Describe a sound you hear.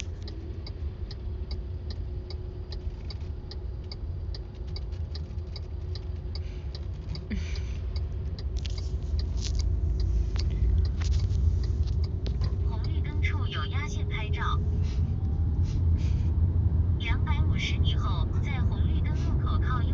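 A young woman talks quietly, close to the microphone.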